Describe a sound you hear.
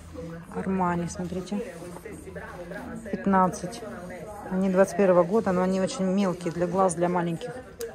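A plastic case clicks as it is opened and closed by hand.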